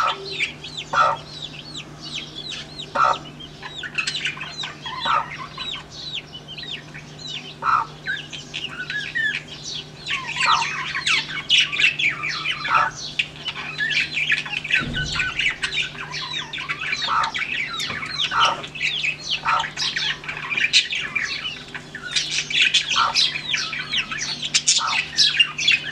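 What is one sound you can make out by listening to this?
Many chicks peep and cheep busily close by.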